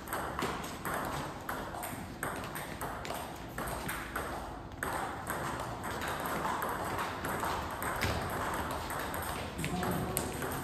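A ball pings back and forth across a table tennis table in an echoing hall.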